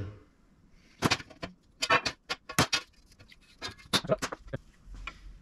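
Metal pieces clank and knock against each other.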